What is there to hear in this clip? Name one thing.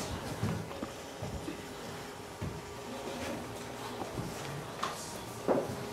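A young boy shifts on the floor with soft rustling and thumps.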